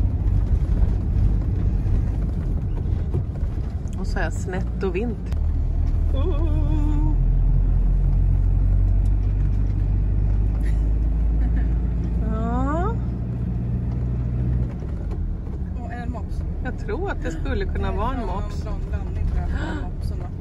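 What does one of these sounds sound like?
A car engine hums steadily from inside the car as it drives along a street.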